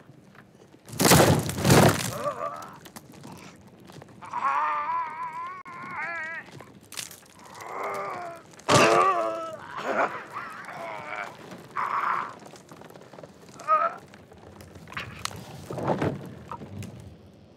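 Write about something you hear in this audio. A man screams loudly in agony.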